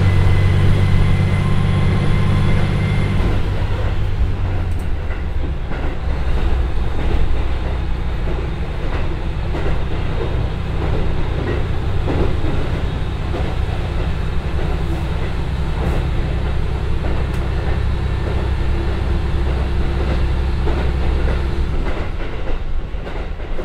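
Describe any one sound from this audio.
A diesel engine drones steadily close by.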